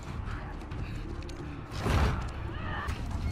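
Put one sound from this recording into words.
A heavy metal door scrapes and rumbles as it is pushed open.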